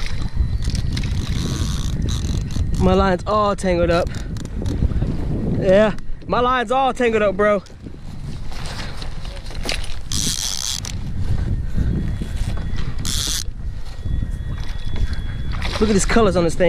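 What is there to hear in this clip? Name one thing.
Water laps against the hull of a small boat.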